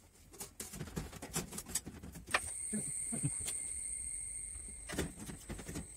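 Plastic ceiling panels knock and rattle.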